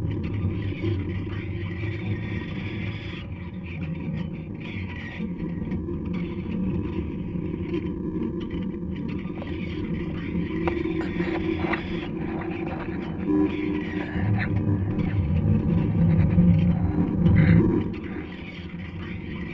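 Electronic music plays from loudspeakers.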